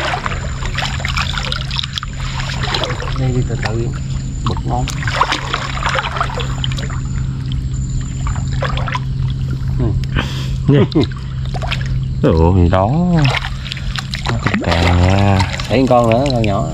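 Water sloshes and splashes.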